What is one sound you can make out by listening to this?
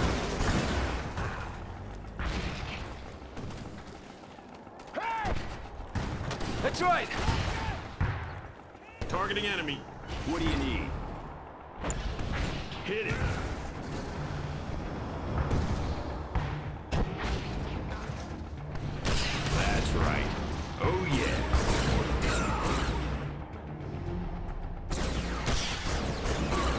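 Laser beams zap and crackle in bursts.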